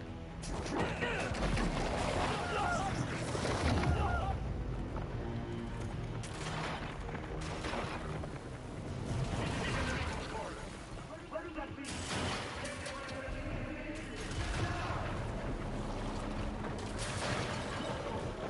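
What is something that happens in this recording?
Heavy blows and crashes ring out in a fight.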